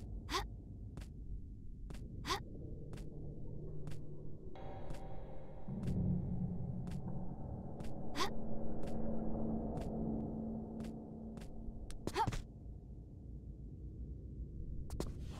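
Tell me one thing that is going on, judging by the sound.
Hands and feet knock softly on stone during a climb.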